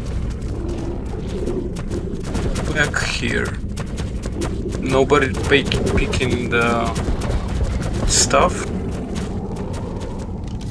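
Large animals' footsteps patter and thud on stone.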